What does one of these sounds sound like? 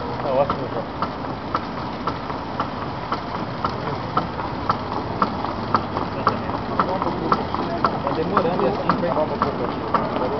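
A paper machine hums and rattles steadily.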